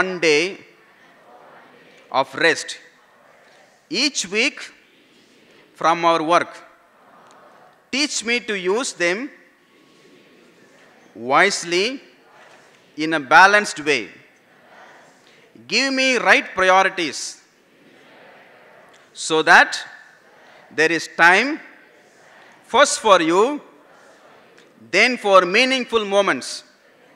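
A middle-aged man speaks slowly and deliberately into a microphone, in short phrases with pauses, in a room with some echo.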